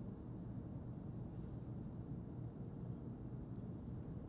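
Footsteps crunch softly.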